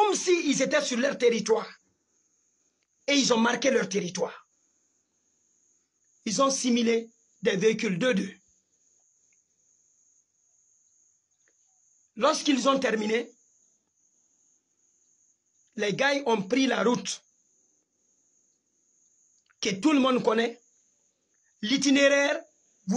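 A young man speaks with feeling, close to the microphone, in short bursts with pauses.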